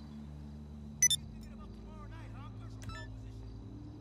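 A phone notification chimes sharply.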